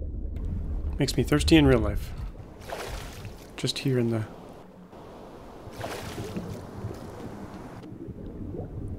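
Water splashes as a swimmer breaks the surface.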